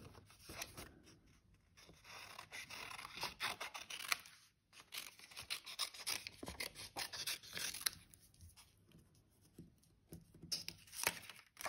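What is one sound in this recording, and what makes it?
Scissors snip through paper in quick, crisp cuts.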